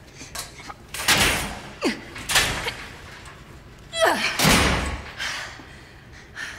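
Metal gate bars rattle and clang.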